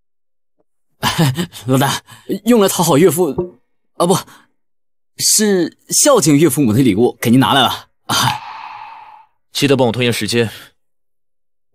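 A young man speaks cheerfully and close by.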